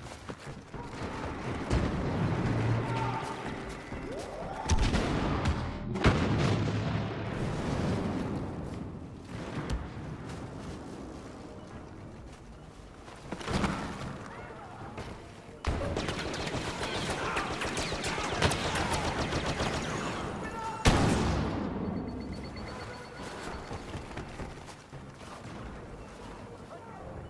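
Boots run over a hard floor.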